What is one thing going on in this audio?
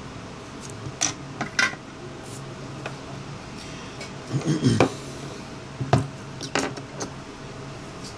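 Small parts click and knock on a hard tabletop.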